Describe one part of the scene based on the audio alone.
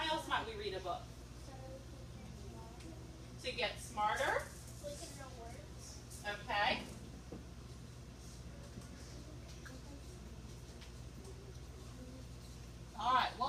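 A young woman speaks in short animated bursts, close by in a room.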